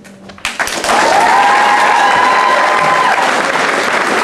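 An audience cheers and whistles.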